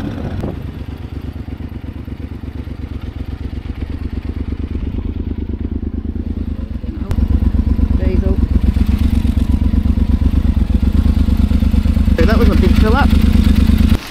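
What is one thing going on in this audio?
A motorcycle engine idles close by with a steady, low throbbing putter.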